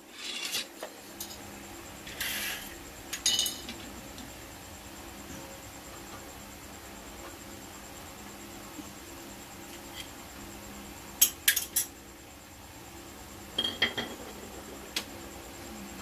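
Metal wrenches clink and clatter against each other.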